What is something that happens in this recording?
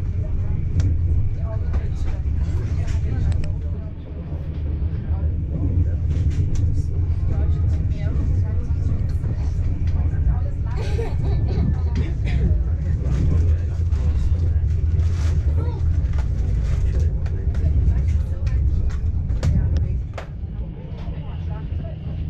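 Train wheels click and clatter over rail joints.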